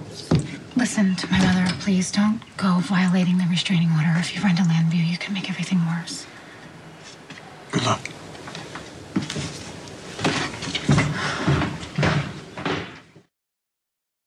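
A woman speaks tensely nearby.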